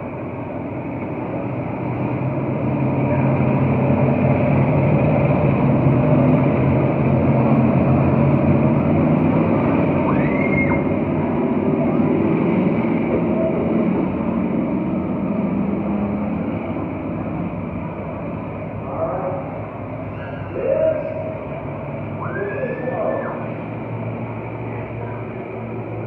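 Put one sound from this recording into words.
Race car engines roar loudly as cars speed past, swelling and then fading.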